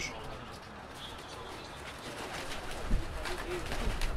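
Pigeons flap their wings as they take off.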